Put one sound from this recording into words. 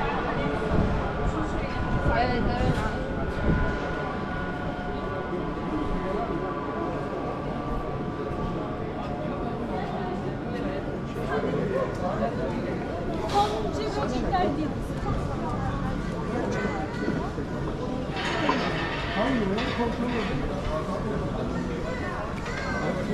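Many people chatter in a busy street outdoors.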